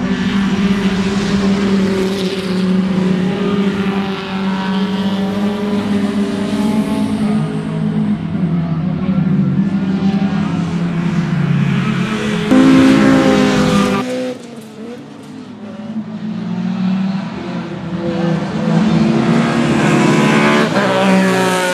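Race car engines roar loudly as cars speed past, rising and falling in pitch.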